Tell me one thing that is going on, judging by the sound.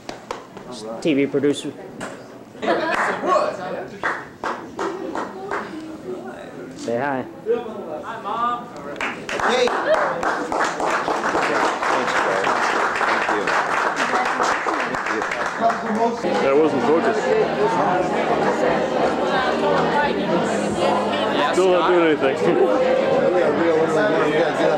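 A crowd chatters and laughs in a busy room.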